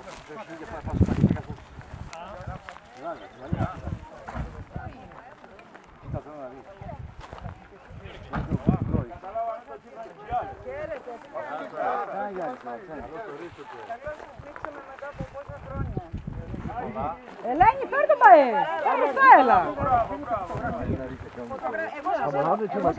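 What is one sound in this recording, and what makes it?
A crowd of men and women talks outdoors, with several voices overlapping.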